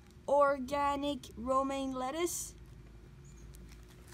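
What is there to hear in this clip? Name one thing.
Plastic packaging crinkles and rustles close by.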